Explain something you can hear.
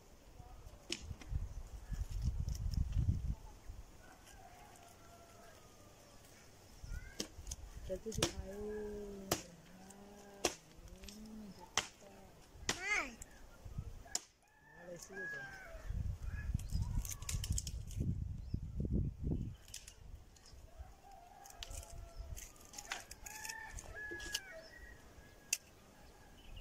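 A stick knocks and scrapes against dry branches on the ground.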